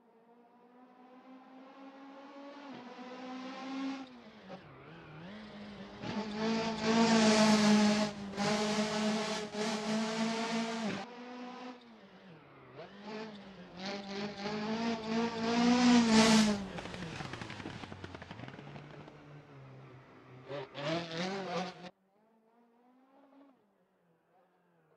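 A rally car engine roars and revs hard as the car races past.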